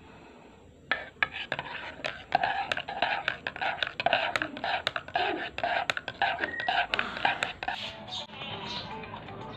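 A metal spoon stirs a drink, clinking quickly against a mug.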